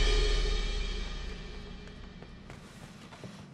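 Gramophone music plays and fades away.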